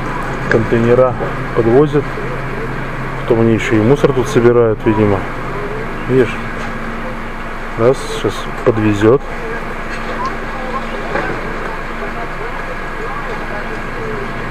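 A truck engine idles nearby with a steady hum.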